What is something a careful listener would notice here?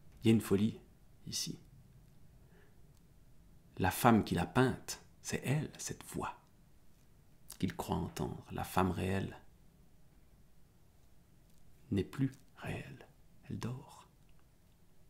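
A man speaks calmly and expressively, close to a microphone, in short bursts with pauses.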